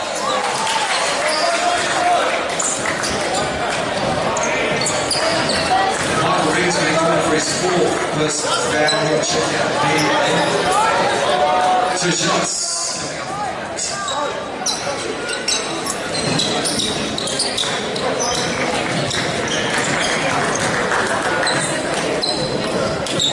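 Shoes squeak sharply on a wooden court in a large echoing hall.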